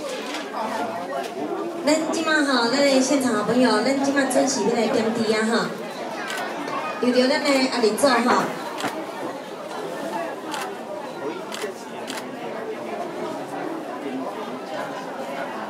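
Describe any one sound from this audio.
A crowd murmurs and talks outdoors.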